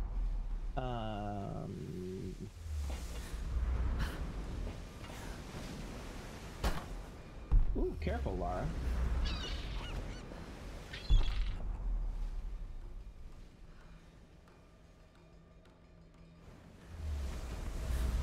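Waves crash and churn around a wooden shipwreck.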